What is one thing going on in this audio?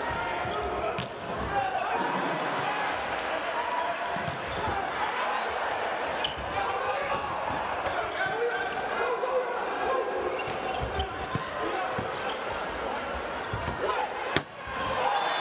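A volleyball is struck hard with sharp smacks.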